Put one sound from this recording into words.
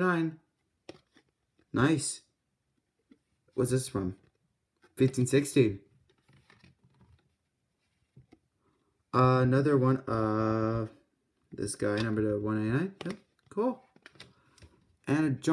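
Trading cards rustle and slide softly in hands.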